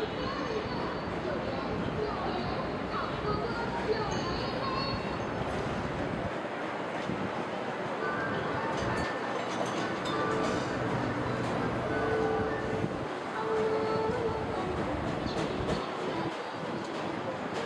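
Voices of passers-by murmur in a busy outdoor walkway.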